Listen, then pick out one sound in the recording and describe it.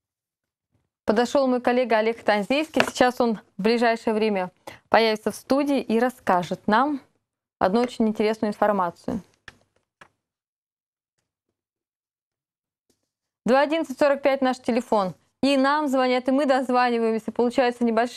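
A woman speaks clearly and calmly into a close microphone.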